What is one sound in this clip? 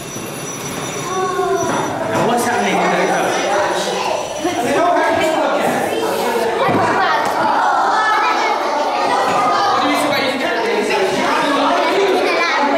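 Young children talk and chatter excitedly nearby.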